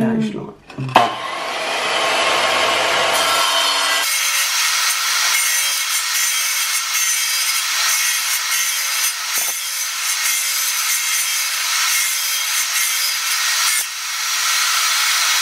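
A tile saw whines loudly as it cuts through a tile.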